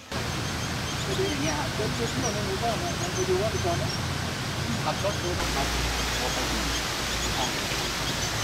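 A man talks on a phone nearby.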